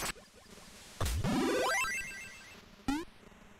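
A rising electronic whoosh sounds as a character jumps.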